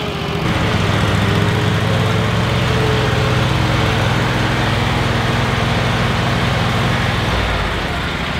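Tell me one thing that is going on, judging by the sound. A riding mower engine idles with a low steady rumble.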